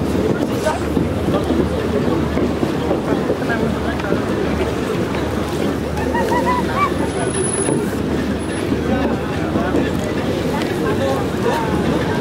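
A crowd of people chatter outdoors in the distance.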